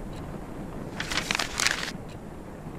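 A sheet of paper rustles.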